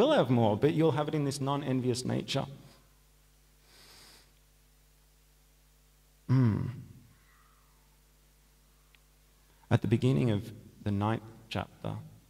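A man chants in a sustained, melodic voice close to a microphone, with pauses between phrases.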